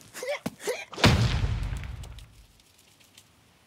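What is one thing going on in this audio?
A heavy boulder crashes down with a deep thud.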